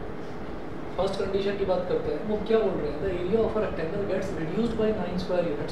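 A man speaks calmly and clearly, as if teaching, close by.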